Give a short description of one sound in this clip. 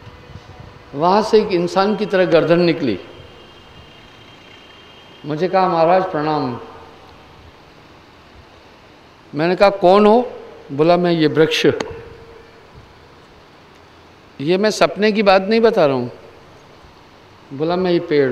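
A middle-aged man speaks calmly through a microphone, in short phrases with pauses.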